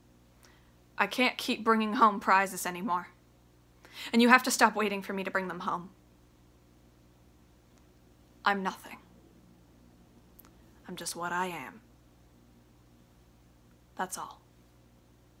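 A young woman speaks calmly and close to a microphone, in short phrases with pauses.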